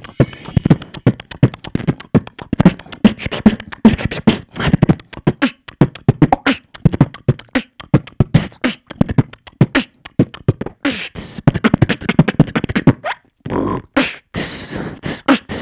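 A young man beatboxes fast, punchy drum rhythms into a microphone through loudspeakers.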